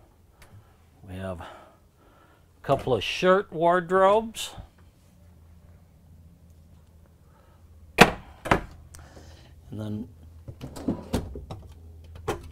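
Cabinet doors knock and thud as they open and shut.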